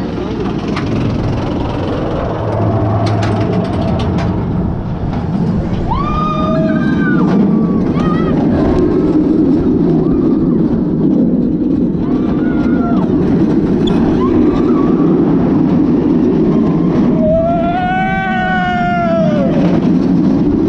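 Wind roars loudly past the microphone.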